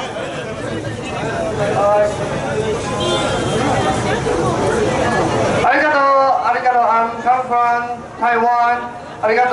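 A man speaks forcefully through a loudspeaker outdoors.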